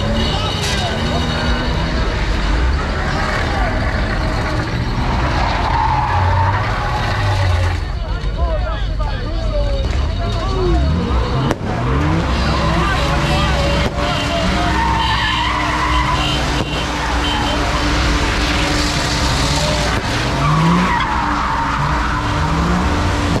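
A large crowd of people shouts and chants loudly nearby, outdoors.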